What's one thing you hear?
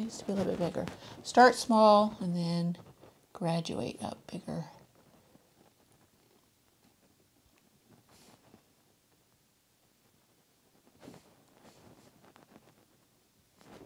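A paintbrush dabs and brushes softly on canvas.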